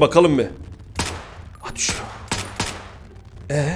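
Pistol shots ring out one after another.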